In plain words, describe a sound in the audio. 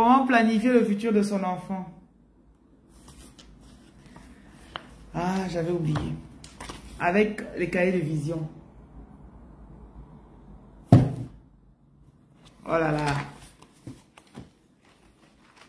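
Paper rustles as a booklet is handled.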